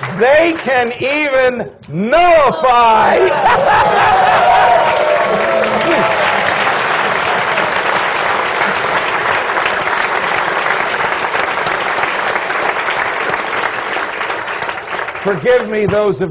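A man speaks loudly through a microphone in a large hall.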